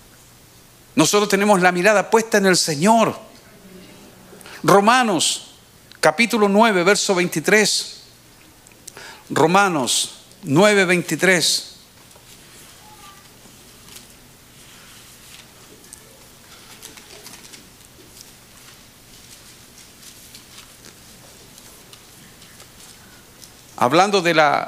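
A middle-aged man speaks calmly into a microphone in bursts, with long pauses.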